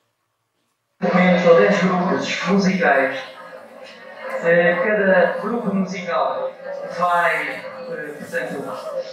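A man reads out loud into a microphone, heard through loudspeakers in a large hall.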